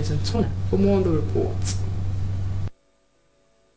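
A young woman speaks clearly and calmly into a microphone.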